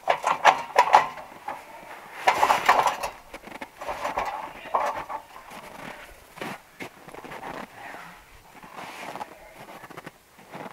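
Tools knock and scrape against a wooden window frame outdoors.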